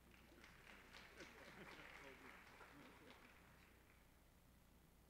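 A crowd claps and applauds, then fades out.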